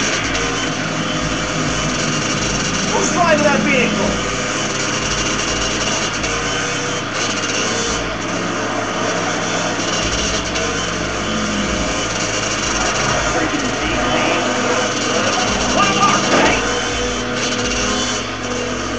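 A video game motorcycle engine drones through a television speaker.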